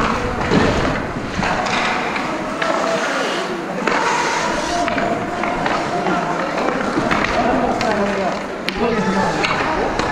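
Hockey sticks clack against pucks.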